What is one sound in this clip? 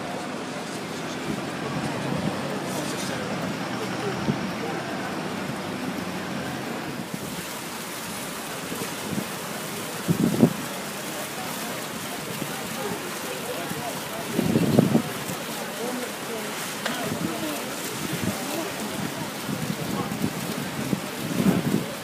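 A fountain splashes and bubbles steadily.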